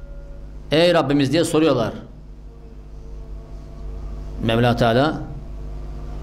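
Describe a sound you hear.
An elderly man reads aloud calmly through a microphone.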